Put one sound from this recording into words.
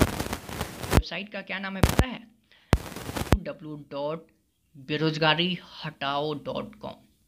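A young man speaks animatedly into a microphone.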